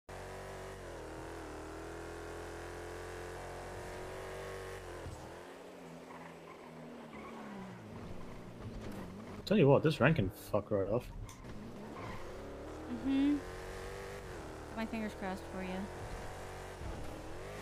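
A car engine hums and revs as the car drives.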